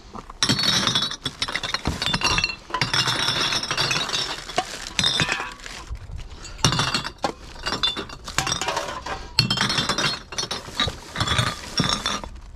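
Plastic bottles and crinkly packaging rustle and crackle.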